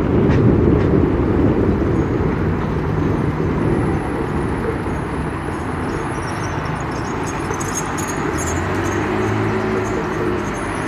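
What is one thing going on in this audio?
A car engine hums steadily from inside the car as it drives down a street.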